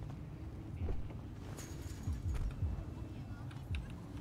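A car door opens and shuts.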